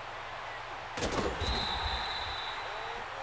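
Players collide with a heavy thud.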